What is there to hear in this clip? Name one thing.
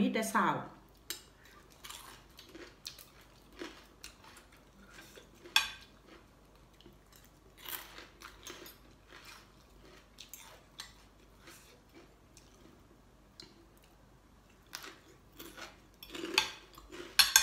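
Metal cutlery clinks against a plate.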